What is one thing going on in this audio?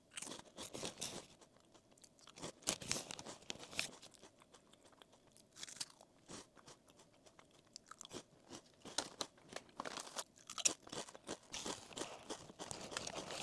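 A plastic snack bag crinkles close to a microphone.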